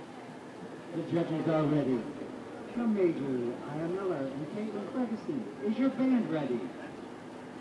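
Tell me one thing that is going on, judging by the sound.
A man talks nearby, outdoors.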